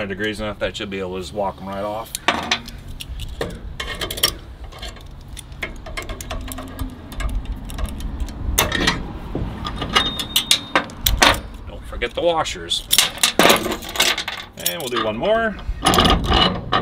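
Metal pliers clank against a steel vise.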